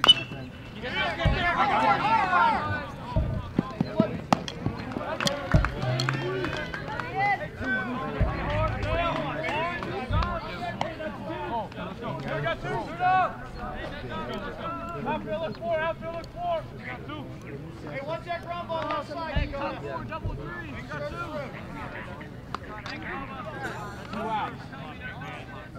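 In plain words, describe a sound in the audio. Men and boys shout and cheer from a distance outdoors.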